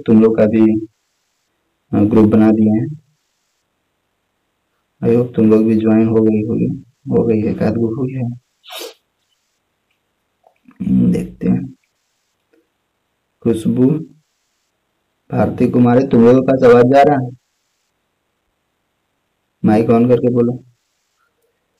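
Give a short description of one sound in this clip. A young man speaks calmly in bursts over an online call.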